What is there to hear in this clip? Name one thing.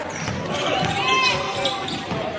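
Sneakers squeak sharply on a hardwood basketball court.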